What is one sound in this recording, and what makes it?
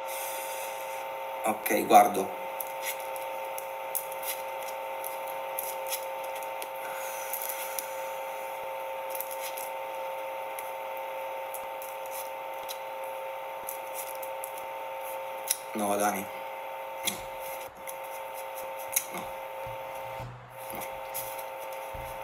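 Playing cards are shuffled and riffled by hand.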